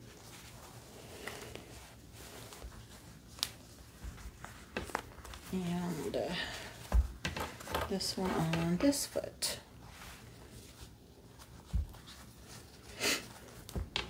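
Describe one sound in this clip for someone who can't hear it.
Plastic and fabric rustle as a doll is handled.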